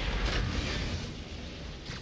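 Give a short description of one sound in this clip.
Fire crackles and sizzles in a burst.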